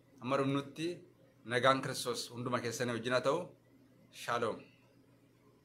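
A man speaks calmly and close up.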